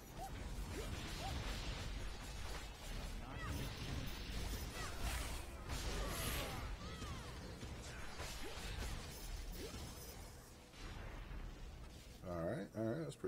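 Magic blasts, whooshes and crackles from a video game go on and on.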